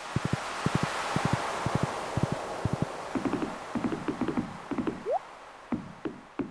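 Hooves clop quickly on sand.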